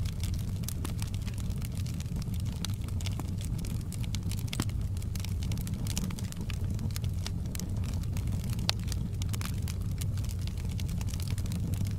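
Logs crackle and pop in a fire.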